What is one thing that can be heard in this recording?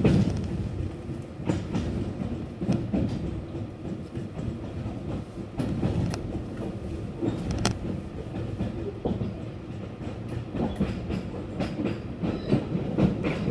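A train rumbles steadily along the tracks at speed.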